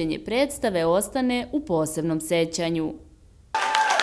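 Children in a large audience sing and shout loudly.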